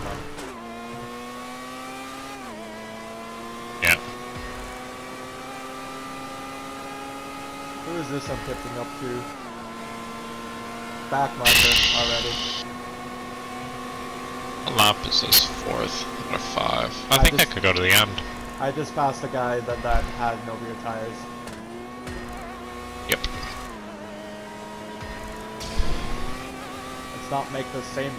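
A racing car engine whines steadily at high speed, its pitch shifting as it changes gear.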